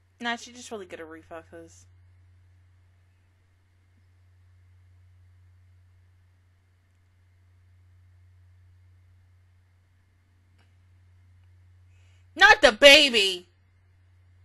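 A young woman speaks briefly and calmly, close into a microphone.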